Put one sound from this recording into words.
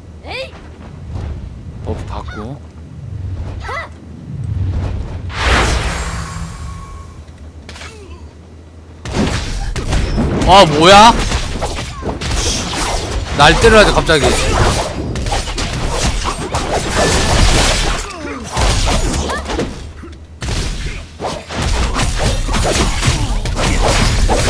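Game combat effects clash and whoosh.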